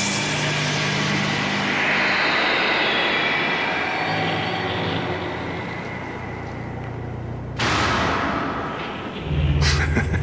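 Magical energy crackles and roars.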